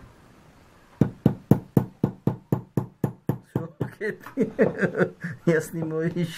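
A small hammer taps rapidly on metal.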